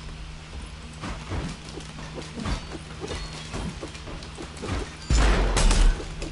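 Fighting sounds of a video game thud and crackle in quick bursts.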